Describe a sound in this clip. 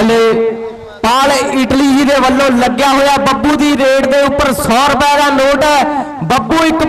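A man chants rapidly and loudly, close by.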